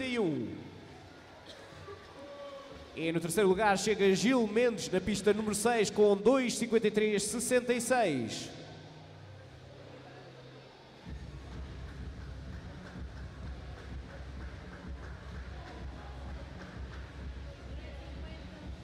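Swimmers splash and kick through the water in a large echoing hall.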